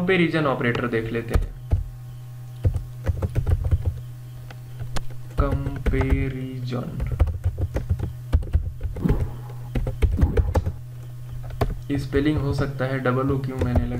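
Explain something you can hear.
Keys clatter on a keyboard as someone types.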